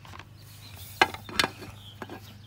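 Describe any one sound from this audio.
A plastic toy taps against a hard surface.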